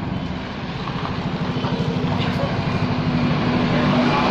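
A motorcycle engine passes close by.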